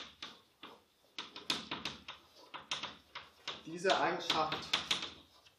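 Chalk taps and scrapes on a blackboard in quick strokes.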